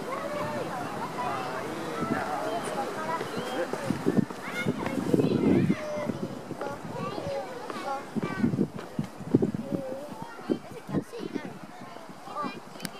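A goat's hooves step softly on rock.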